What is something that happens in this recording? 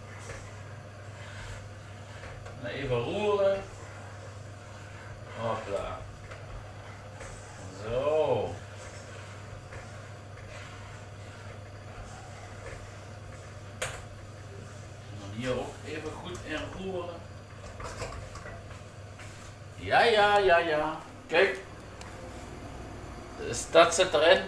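A range hood fan hums steadily.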